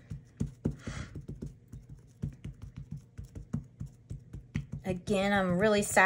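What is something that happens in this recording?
A stamp block taps repeatedly on paper.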